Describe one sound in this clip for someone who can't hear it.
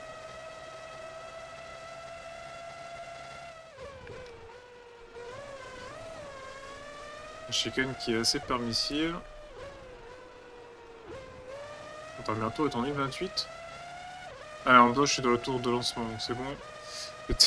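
A racing car engine whines at high revs, dropping in pitch when braking and rising again as it speeds up.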